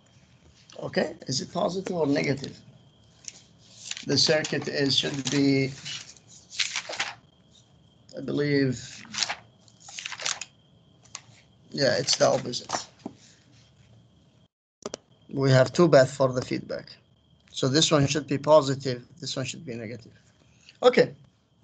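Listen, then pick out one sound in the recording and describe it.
A man speaks calmly through an online call, explaining in bursts with pauses.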